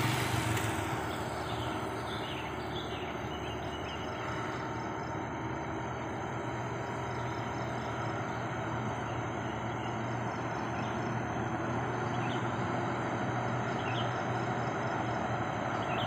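A second truck engine rumbles.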